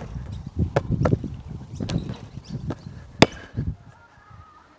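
A basketball bounces and thuds on an outdoor court.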